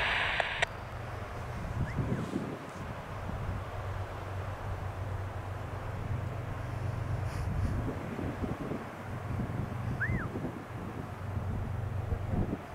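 A train rumbles steadily far off.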